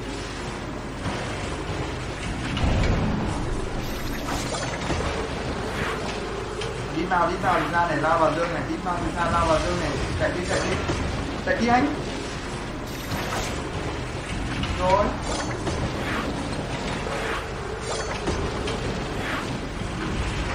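Magic spells crackle and whoosh in a game battle.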